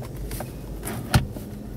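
A car armrest lid clicks as it is lifted.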